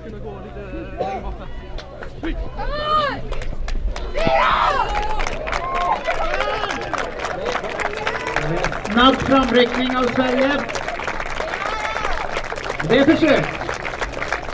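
A crowd of spectators shouts and cheers outdoors close by.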